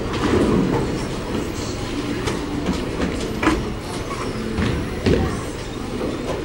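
Bowling pins clatter and balls rumble in a large echoing hall.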